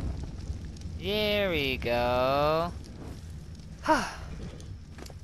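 A creature lets out loud, wavering cries.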